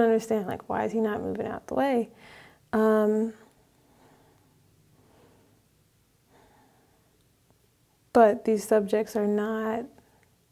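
A young woman speaks with animation into a nearby microphone, pausing now and then.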